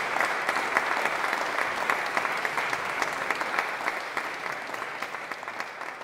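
An audience applauds in a large echoing hall, slowly fading.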